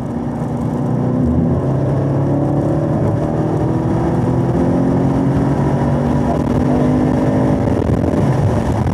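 Wind rushes past a fast-moving car.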